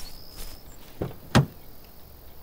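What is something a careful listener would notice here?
A car boot lid swings open with a thud.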